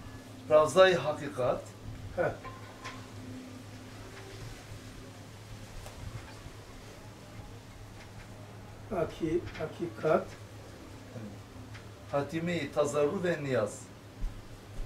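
An elderly man speaks calmly in short bursts.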